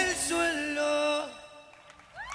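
A young man sings a long held note into a microphone.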